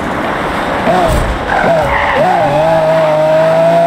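Tyres screech as a car drifts through a bend.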